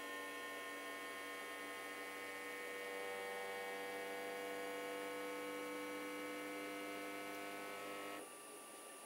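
A cooling fan hums steadily.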